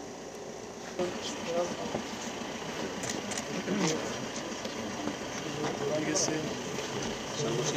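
Men talk quietly outdoors.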